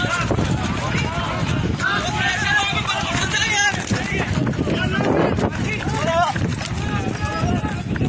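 Several men shout excitedly outdoors.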